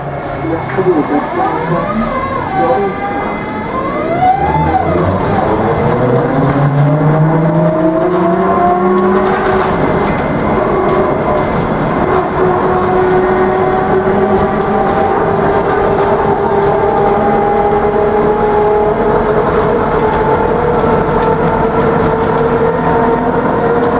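A bus rumbles and rattles steadily along the road.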